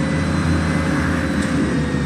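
A car passes by going the other way.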